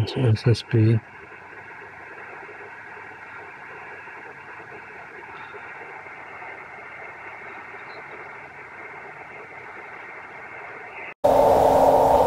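A radio receiver hisses softly and steadily.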